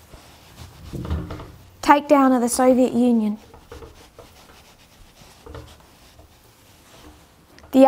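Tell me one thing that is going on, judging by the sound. A felt eraser rubs across a whiteboard.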